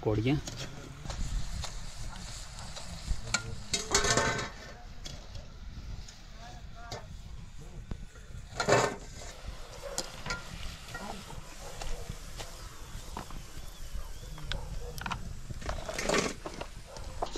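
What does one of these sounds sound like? A metal strainer clinks against a pan.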